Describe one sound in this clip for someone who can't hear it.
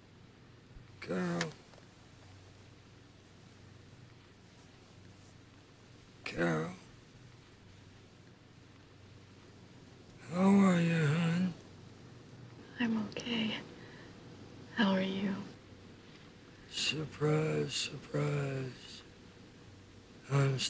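A woman speaks softly and gently, close by, in short phrases.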